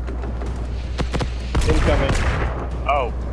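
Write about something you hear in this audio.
Gunshots crack close by.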